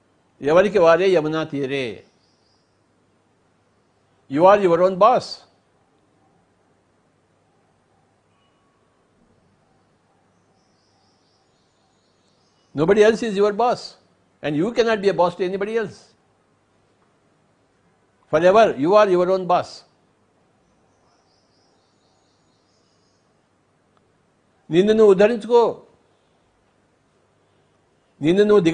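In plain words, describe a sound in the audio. An elderly man speaks slowly and calmly into a close microphone, in short phrases with long pauses.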